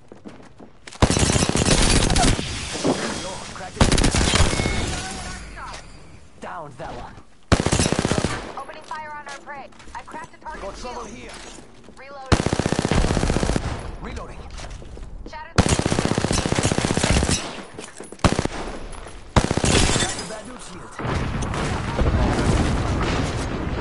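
Rapid gunfire bursts in loud, repeated volleys.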